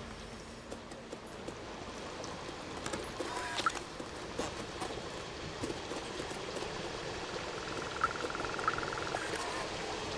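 A cat's paws patter softly on wooden boards.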